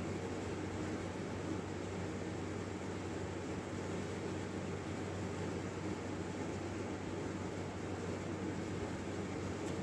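A putty knife scrapes softly across a hard surface.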